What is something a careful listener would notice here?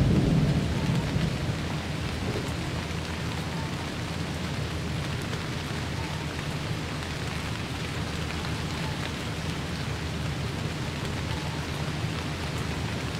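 Steady rain pours down outdoors.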